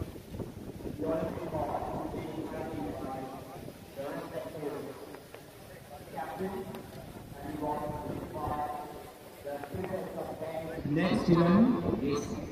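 A young man speaks through a microphone over loudspeakers outdoors, with a slight echo.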